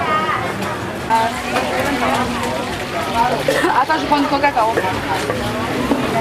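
Men and women chatter nearby in a lively crowd.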